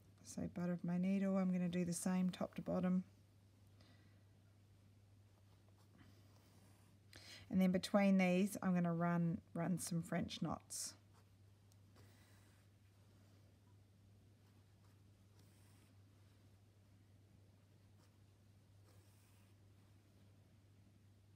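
A needle and thread pull softly through cloth.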